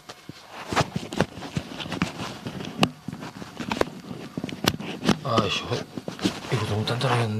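A hand rubs and rustles against a microphone very close up.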